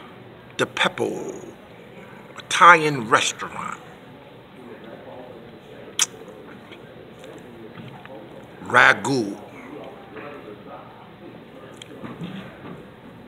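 A middle-aged man speaks close to a phone microphone in short, animated bursts.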